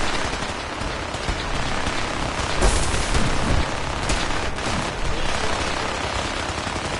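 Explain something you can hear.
Steam hisses loudly and steadily.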